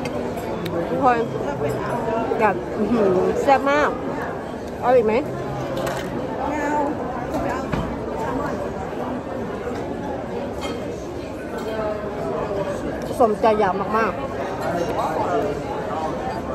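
A young woman talks animatedly close to a microphone.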